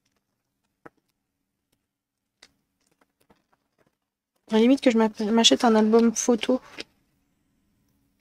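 Paper rustles as a card slides into a plastic sleeve.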